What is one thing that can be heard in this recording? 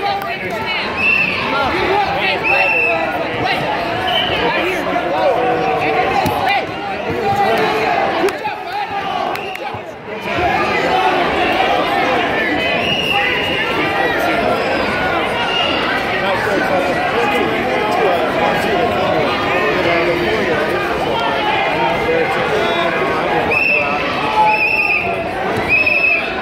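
Sneakers squeak on a mat.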